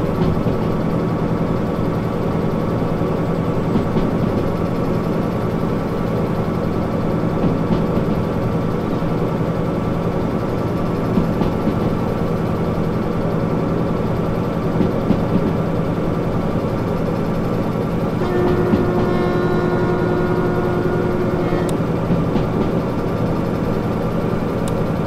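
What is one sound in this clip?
Train wheels clatter and rumble on the rails.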